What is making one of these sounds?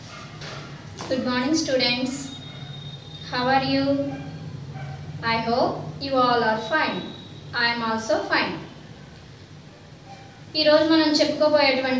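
A woman speaks clearly and calmly close by.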